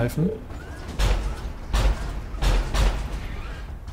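A heavy mechanical walker stomps with deep, thudding footsteps.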